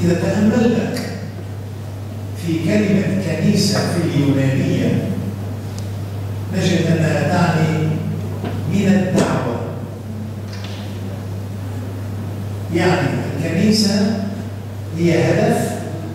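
An elderly man speaks calmly and slowly, close to a microphone, with pauses between phrases.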